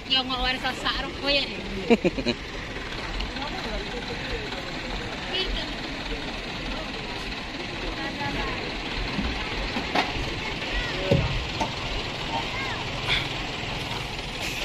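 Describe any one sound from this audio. A truck engine runs and strains.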